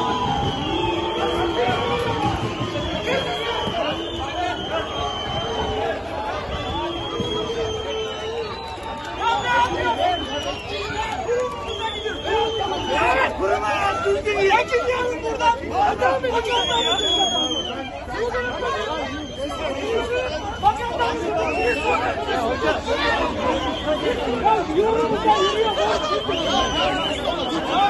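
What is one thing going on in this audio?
A crowd of men and women shouts and chants loudly outdoors.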